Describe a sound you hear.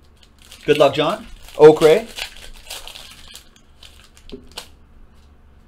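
A foil pack crinkles as hands tear it open.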